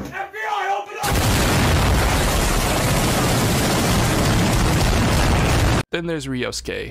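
A loud explosion blasts and rumbles.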